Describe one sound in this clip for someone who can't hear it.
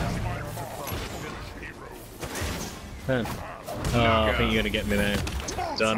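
Energy blasts whoosh and crackle during a fight.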